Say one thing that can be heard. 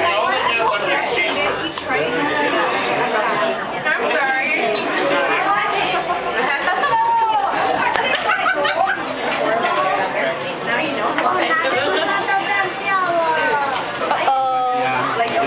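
Several people chatter.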